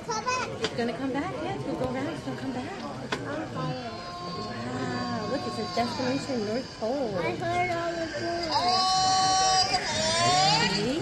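A crowd of adults and children chatters indoors.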